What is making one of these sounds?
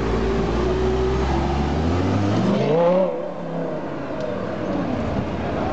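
A sports car engine rumbles deeply, then revs up sharply and pulls away.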